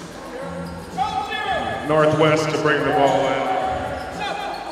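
Players shout to each other in a large echoing gym.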